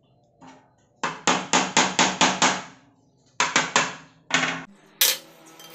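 A metal saw blade rings with sharp clinks, struck again and again.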